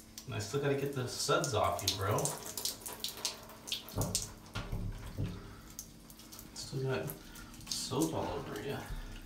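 Water sprays from a handheld shower head.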